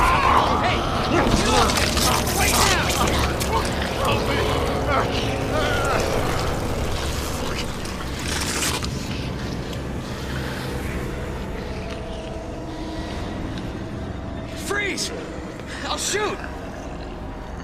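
A man shouts urgently nearby.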